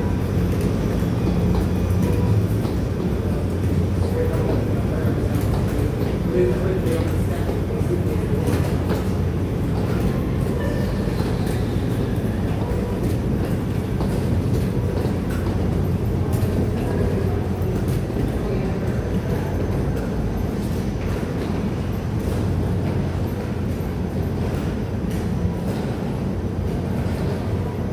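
Footsteps tap along an echoing passage.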